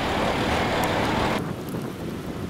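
A diesel locomotive engine idles with a low rumble.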